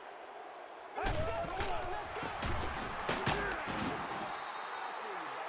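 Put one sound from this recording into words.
Padded players collide with heavy thuds.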